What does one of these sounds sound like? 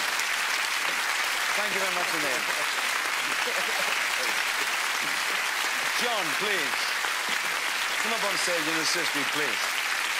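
A large audience claps and applauds steadily.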